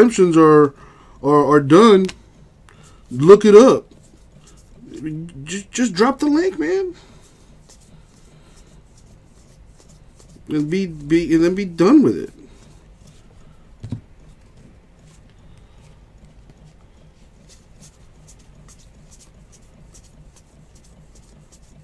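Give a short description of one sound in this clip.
Cards rustle and slide against each other as hands shuffle through them.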